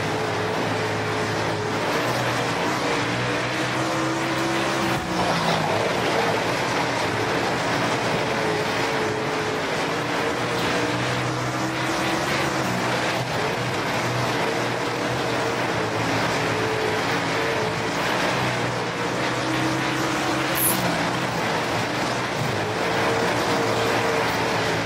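A race car engine roars steadily, rising and falling in pitch as it speeds up and slows down.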